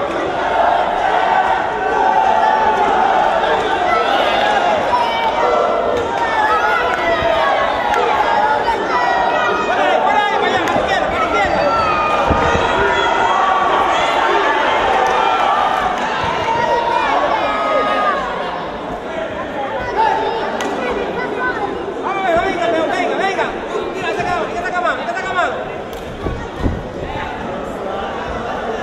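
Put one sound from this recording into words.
A crowd in a large hall shouts and cheers throughout.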